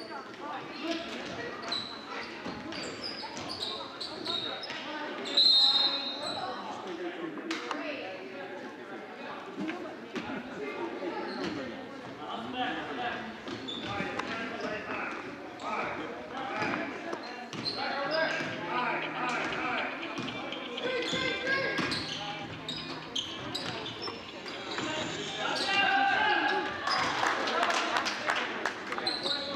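A crowd of spectators chatters and cheers in an echoing gym.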